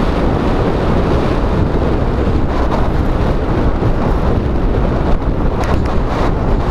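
Wind rushes loudly past a moving vehicle.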